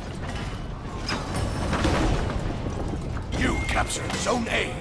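Metal weapons clash and clang.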